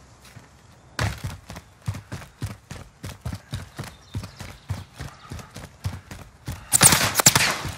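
Footsteps run quickly over pavement.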